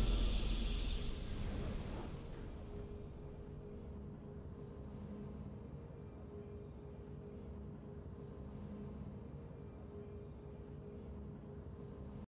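Triumphant game music swells and then settles into a soft, steady hum.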